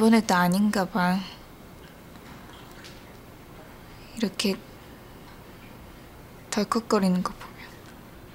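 A young woman speaks quietly and sadly, close by.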